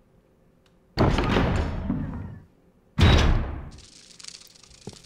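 A heavy metal door scrapes and groans open loudly.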